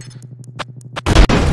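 A gun fires with a sharp, loud bang.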